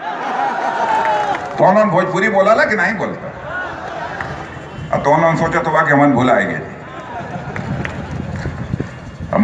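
A man speaks forcefully into a microphone over loudspeakers outdoors.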